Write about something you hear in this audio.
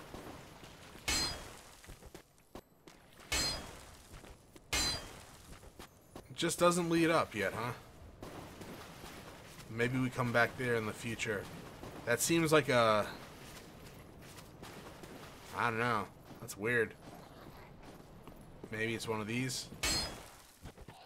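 A sword swings and clangs against armour.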